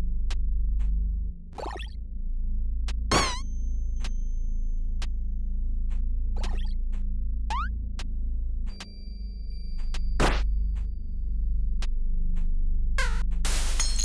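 Low game music plays steadily throughout.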